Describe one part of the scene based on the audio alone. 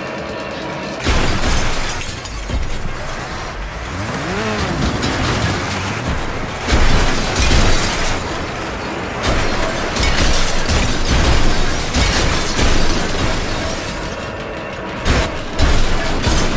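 Metal crashes and bangs as cars collide and tumble.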